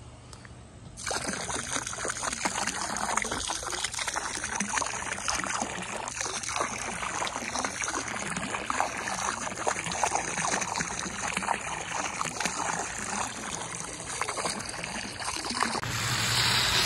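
Liquid splashes as it pours into pool water.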